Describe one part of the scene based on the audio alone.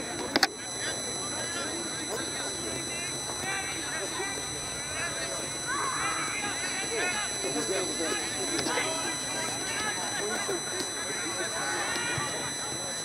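Young women shout and call out to each other across an open field outdoors.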